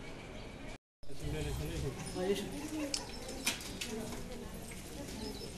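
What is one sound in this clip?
Men and women chatter in a crowd nearby.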